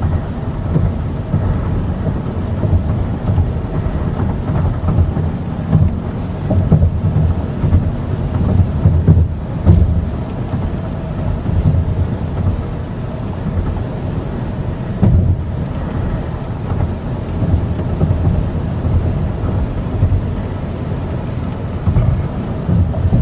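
A car's engine hums steadily from inside the cabin.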